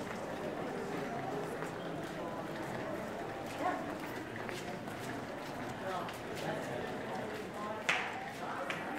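Footsteps patter on stone paving.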